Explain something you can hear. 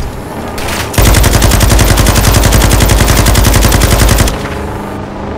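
A rifle fires a rapid burst of loud shots.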